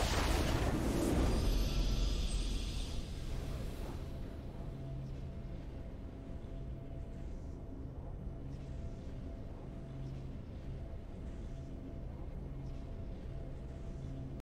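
A triumphant fanfare plays and settles into a soft, steady melody.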